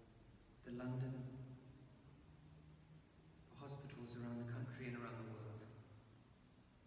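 A man chants in a slow, sung tone in a large echoing hall.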